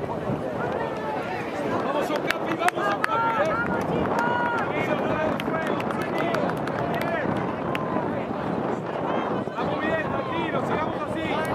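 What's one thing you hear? Young women players call out to each other on the field.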